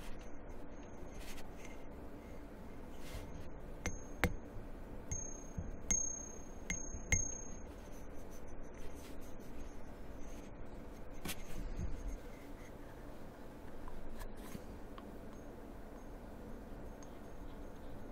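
Fingers tap and click against a small metal object.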